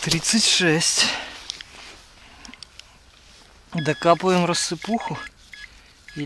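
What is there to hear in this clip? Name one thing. A hand digger scrapes into dry soil and twigs.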